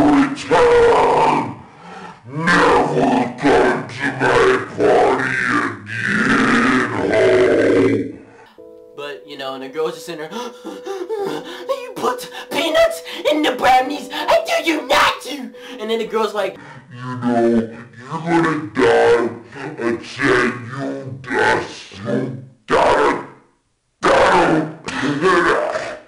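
A young man shouts and screams close to a microphone.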